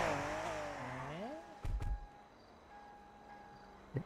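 A car door shuts.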